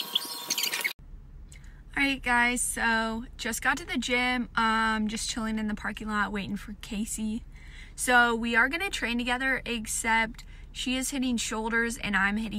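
A young woman talks calmly and cheerfully, close to the microphone.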